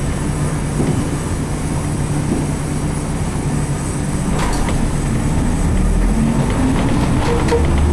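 A bus engine hums steadily from inside as the bus drives along.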